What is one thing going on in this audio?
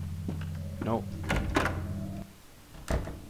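A door handle rattles against a stuck lock.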